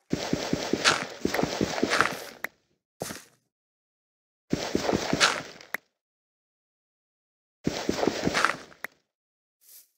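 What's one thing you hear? Blocks of dirt crunch as they are dug out and placed.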